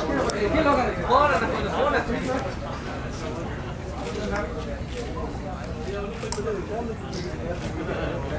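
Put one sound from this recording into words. A crowd of men chatters and calls out loudly close by.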